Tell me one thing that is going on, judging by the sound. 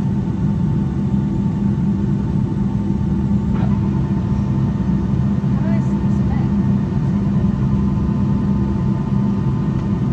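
Aircraft wheels rumble over the taxiway.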